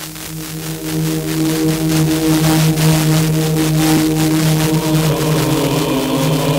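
A car radio plays music through its speakers.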